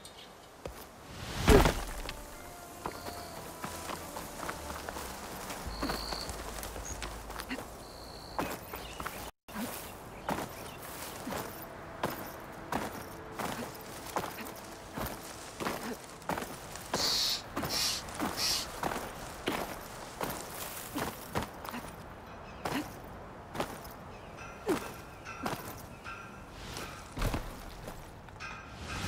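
Footsteps crunch through dry brush and grass.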